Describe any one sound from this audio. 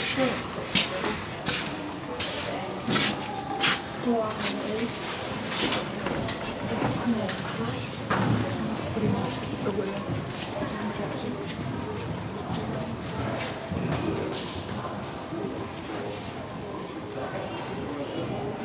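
A horse canters, its hooves thudding softly on sand.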